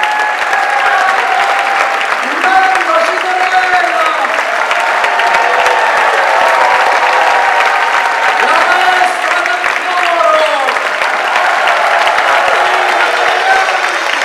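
A large choir of men and women sings together in an echoing hall.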